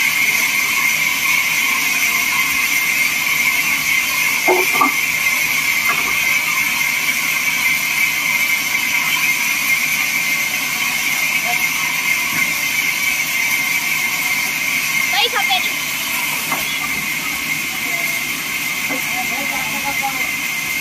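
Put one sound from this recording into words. A band saw runs with a steady, high whine.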